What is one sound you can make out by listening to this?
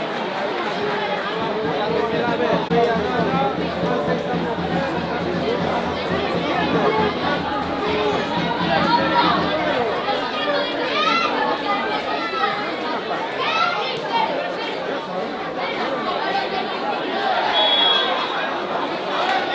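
A small crowd of spectators chatters and calls out.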